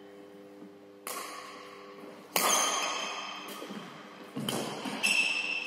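Badminton rackets strike a shuttlecock with sharp pops that ring through a large echoing hall.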